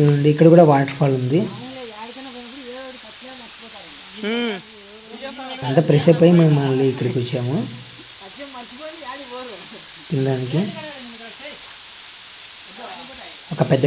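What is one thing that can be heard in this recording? A waterfall splashes steadily onto rocks.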